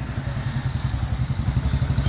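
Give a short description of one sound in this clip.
A motorbike engine putters past.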